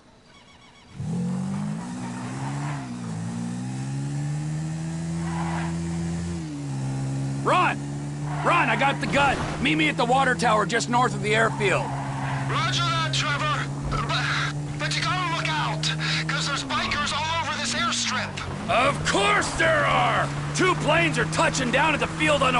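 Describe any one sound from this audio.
A quad bike engine hums steadily and revs up and down.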